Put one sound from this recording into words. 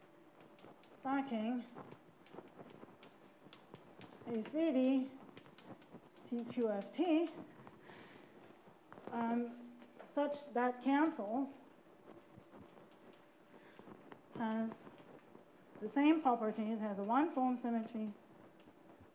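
A woman speaks calmly in short phrases in a room with a slight echo.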